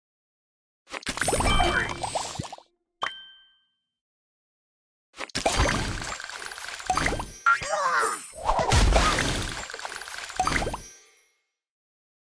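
Game candies pop and burst with bright sparkling effects.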